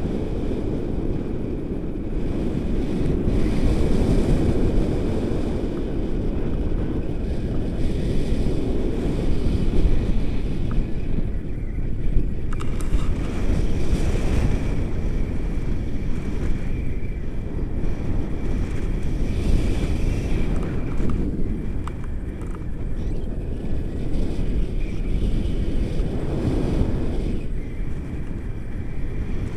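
Wind rushes loudly and steadily past a microphone outdoors.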